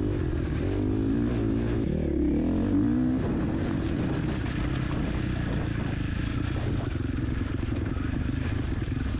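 Tyres churn through mud and wet grass.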